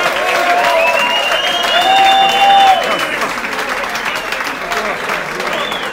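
A crowd of young men cheers and hollers loudly close by.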